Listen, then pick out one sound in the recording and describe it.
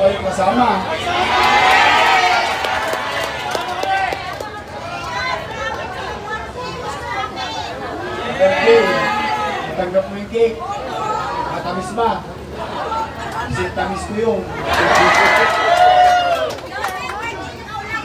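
A crowd cheers and shouts together.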